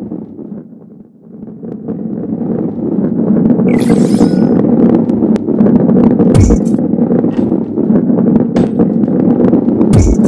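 A ball rolls with a low, steady rumble that grows louder.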